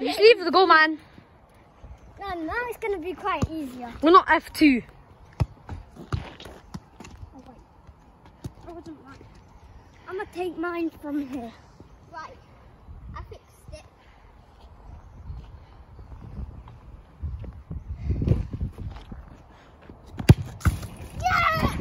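A young boy talks with animation close by.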